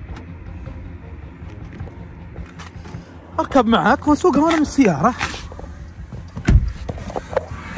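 A car door opens and thuds shut.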